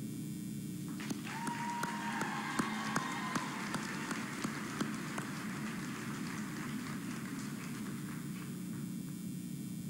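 A crowd applauds and cheers in a large hall.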